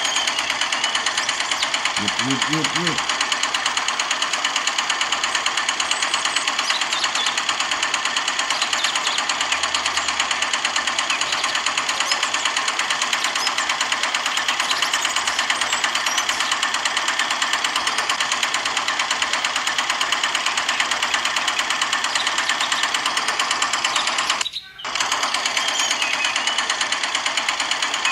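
A small motor buzzes and rattles steadily.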